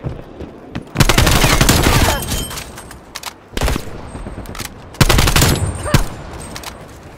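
An automatic rifle fires in bursts in a video game.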